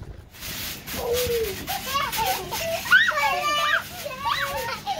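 Children shout and squeal.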